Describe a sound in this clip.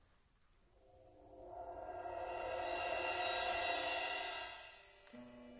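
An orchestra plays a sustained chord.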